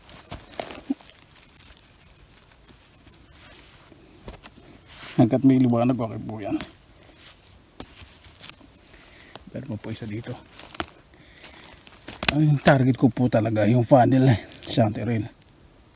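Moss and twigs rustle softly as a hand picks mushrooms.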